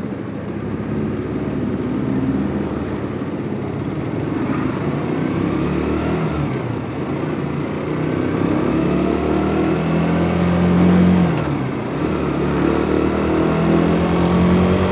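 A motorcycle engine hums and rises in pitch as the rider speeds up.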